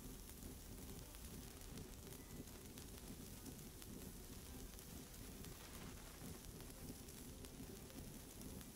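Sparks crackle against metal.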